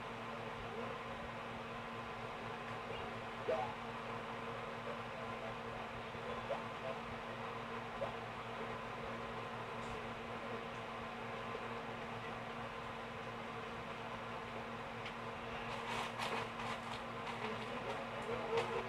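Soft, tinkly game music plays through a television speaker.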